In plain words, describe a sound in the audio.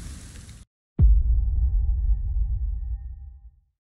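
A deep whoosh sweeps down into a low rumbling boom.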